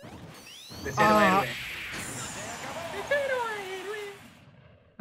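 A young man shouts with excitement over an online call.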